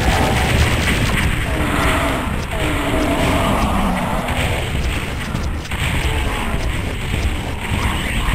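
A video game rocket launcher fires.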